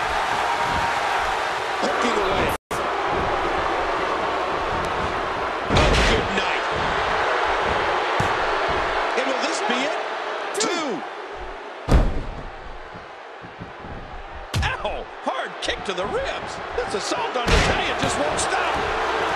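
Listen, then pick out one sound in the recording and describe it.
A large crowd roars and cheers steadily in a big arena.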